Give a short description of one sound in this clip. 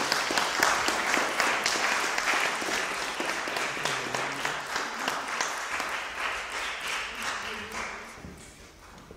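A fiddle plays a lively tune.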